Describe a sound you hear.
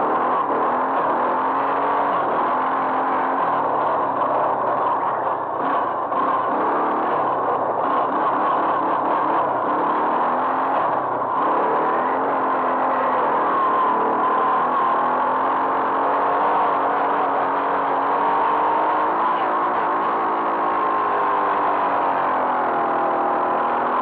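Wind rushes past the microphone.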